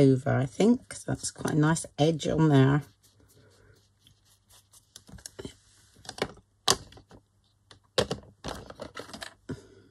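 A small pad dabs and taps against paper.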